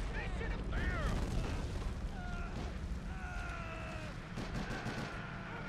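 A tank engine rumbles and clanks as it drives.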